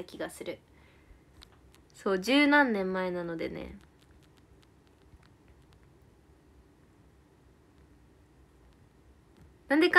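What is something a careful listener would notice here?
A young woman speaks close to a microphone, in short bursts with long pauses.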